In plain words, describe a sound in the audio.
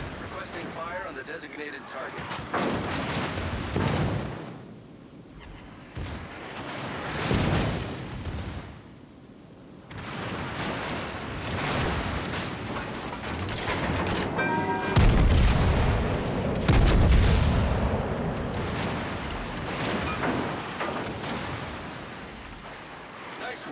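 Shells splash into the sea around a warship.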